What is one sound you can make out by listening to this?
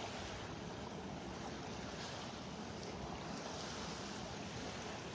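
Small waves lap gently on a sandy shore.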